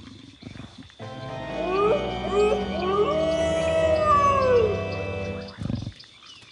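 A creature lets out a series of rising and falling yowling cries.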